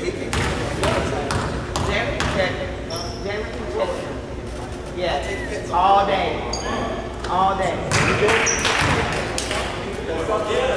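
Spectators talk and call out in a large echoing gym.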